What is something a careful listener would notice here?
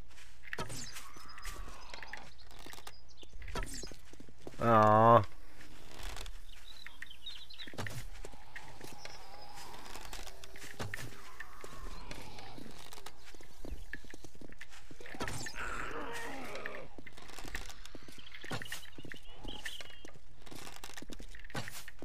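A bow string twangs as arrows are loosed.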